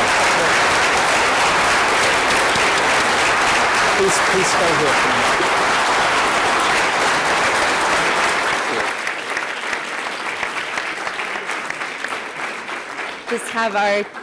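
An audience applauds loudly in a large echoing hall, then the clapping fades.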